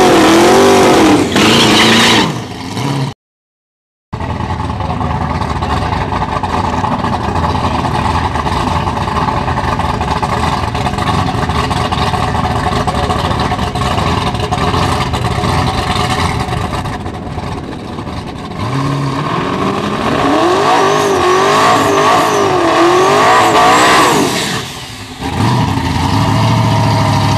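Spinning drag-car tyres screech on the track.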